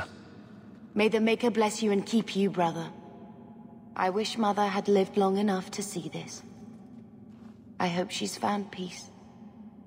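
A young woman speaks warmly and softly.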